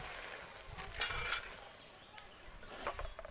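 A metal pan knocks and scrapes on concrete.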